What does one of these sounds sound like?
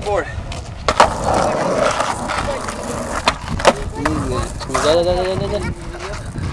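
A skateboard clacks sharply against the road.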